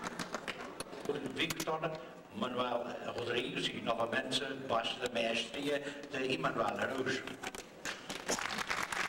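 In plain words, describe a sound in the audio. A man speaks calmly into a microphone, amplified in a large hall.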